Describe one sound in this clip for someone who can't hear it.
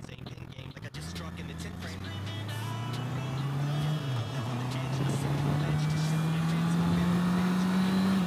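A motorcycle engine hums and rises in pitch as the bike speeds up.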